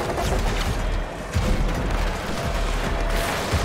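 Energy blasts boom and crackle.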